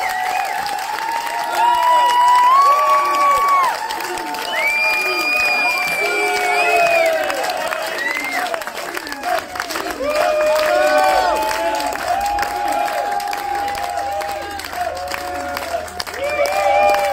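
Many people clap their hands.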